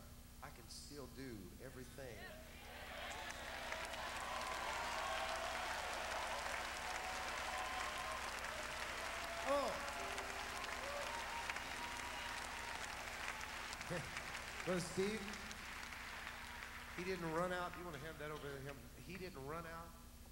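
A man speaks animatedly into a microphone.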